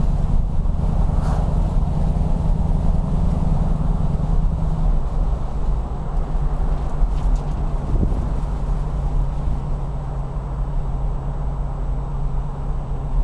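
Tyres roar steadily on a paved road.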